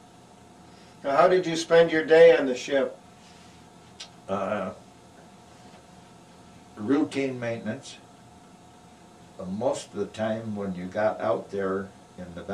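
An elderly man speaks calmly and close by, in short bursts with pauses.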